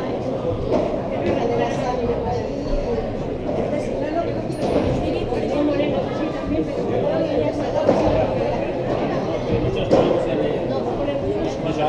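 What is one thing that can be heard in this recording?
Children chatter in the background.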